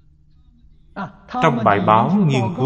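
An elderly man speaks calmly and with expression into a close microphone.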